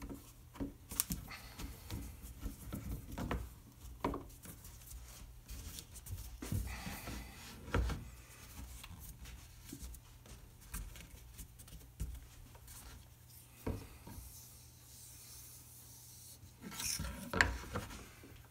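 Wood knocks softly against a tabletop.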